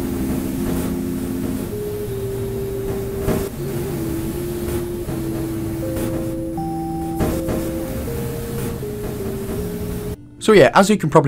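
Slow, gentle melody plays on soft synthesized tones.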